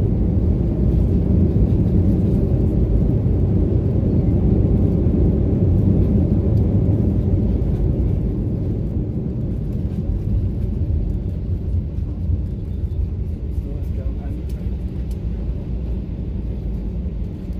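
A jet airliner's engines roar loudly from inside the cabin.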